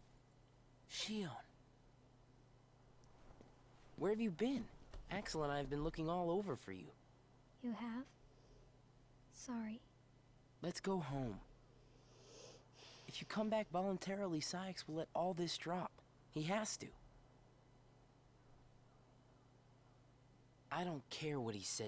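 A young woman speaks quietly into a microphone.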